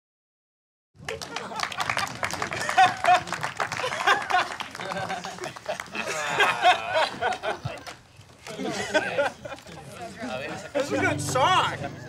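A crowd of people chatter and laugh outdoors.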